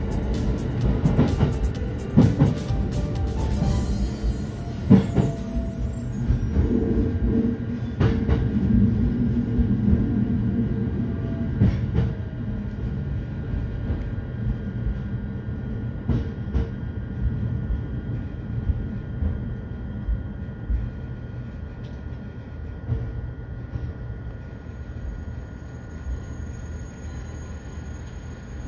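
A train rumbles and clatters over the rails as it slows down.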